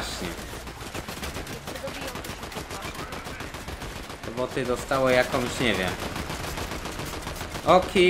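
Gunshots crack rapidly in a video game.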